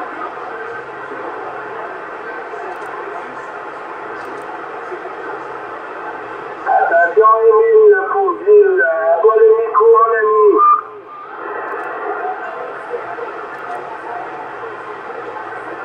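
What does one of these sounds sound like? A radio receiver hisses with steady static.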